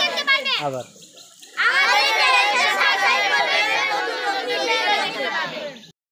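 A group of young children sing together loudly and close by.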